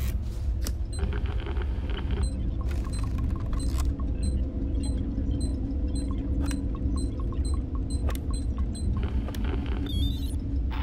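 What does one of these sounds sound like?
An electronic device beeps in short, regular pips.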